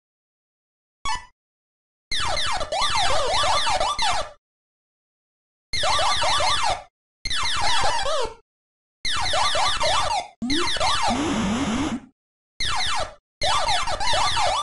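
Retro arcade game sound effects chirp, zap and swoop in quick bursts.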